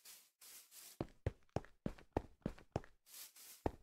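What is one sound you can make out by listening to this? Footsteps knock sharply on hard stone.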